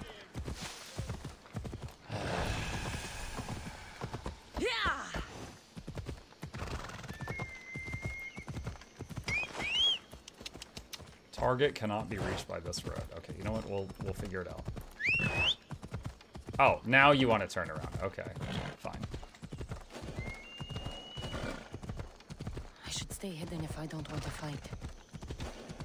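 Hooves of a horse clop steadily on the ground.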